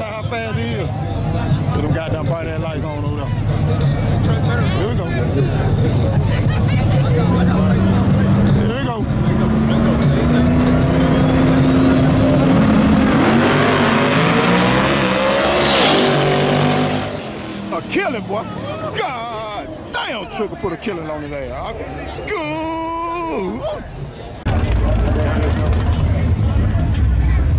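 Drag racing car engines idle and rumble loudly.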